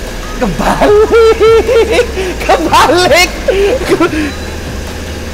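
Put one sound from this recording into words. A young man laughs loudly and excitedly nearby.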